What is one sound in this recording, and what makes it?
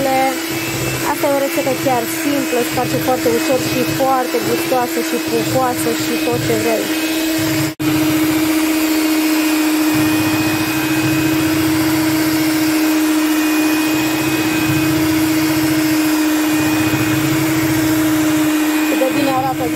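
An electric hand mixer whirs steadily.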